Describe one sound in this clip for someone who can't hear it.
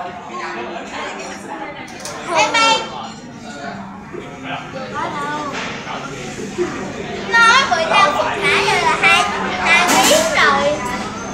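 Young boys talk and shout excitedly close by.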